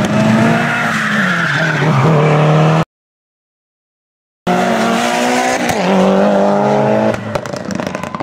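A rally car engine revs hard.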